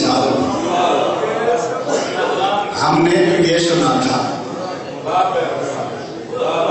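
A middle-aged man sings loudly and passionately into a microphone, heard through loudspeakers.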